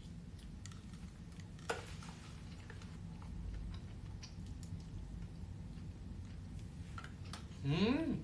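A fork clinks lightly against a bowl.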